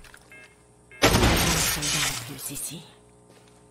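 A small box bursts apart with a blast.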